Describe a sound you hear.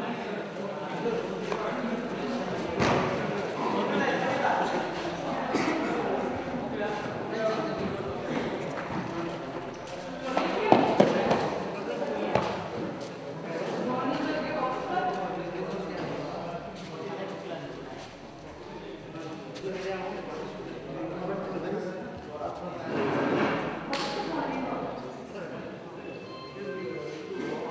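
Several young men chatter and call out in a large echoing hall.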